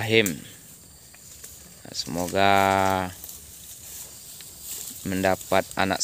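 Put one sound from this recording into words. A cow tears and chews grass close by.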